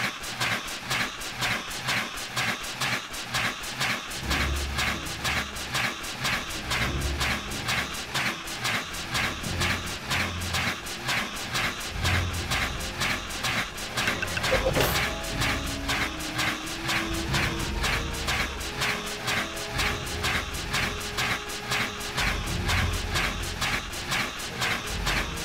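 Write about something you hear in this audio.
Blows strike a large creature again and again in quick succession.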